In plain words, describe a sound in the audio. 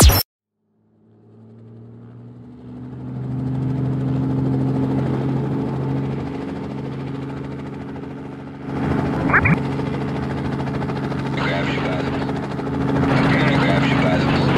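A toy helicopter's rotor whirs steadily as it flies.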